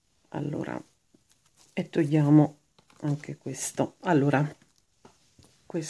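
Fingers rustle a roll of fabric tape close by.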